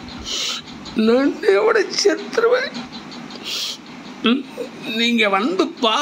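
A middle-aged man speaks in a choked, tearful voice over a phone call.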